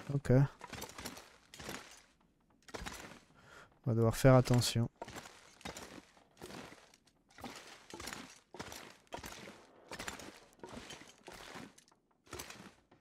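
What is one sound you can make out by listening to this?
Footsteps crunch over straw on a wooden floor at a steady walking pace.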